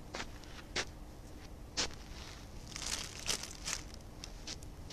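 Knocks and rustles sound close by as a phone is handled.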